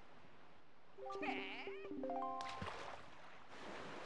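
A short musical jingle plays in rising notes.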